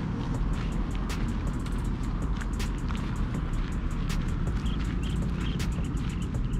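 Footsteps crunch on dry gravel.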